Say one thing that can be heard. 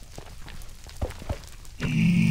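A sword strikes a creature with quick thuds.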